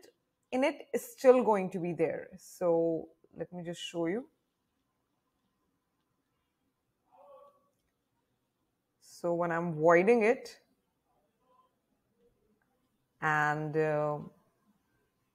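A young woman speaks calmly into a close microphone, in short bursts with pauses.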